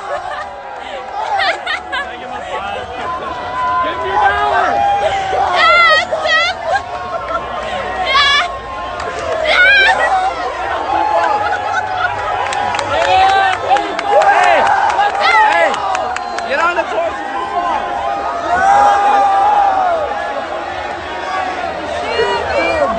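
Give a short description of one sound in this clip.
A crowd of young people chatters and shouts close by outdoors.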